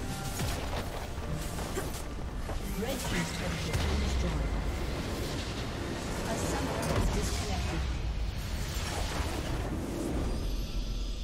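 Game spells and weapons clash and crackle in a busy fight.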